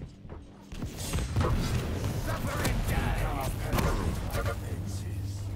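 A crackling energy weapon fires in rapid bursts.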